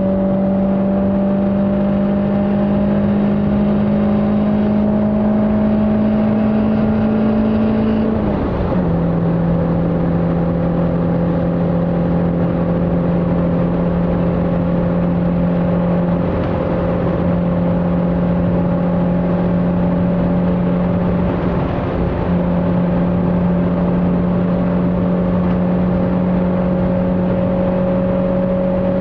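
A car engine drones steadily at high speed, its pitch rising slowly, then dropping briefly before holding steady.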